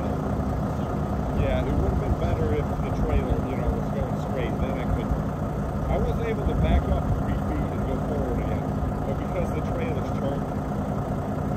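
A second man answers calmly, a short way off.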